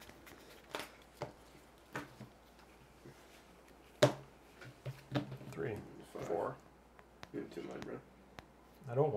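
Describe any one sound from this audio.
Playing cards and tokens tap down onto a table.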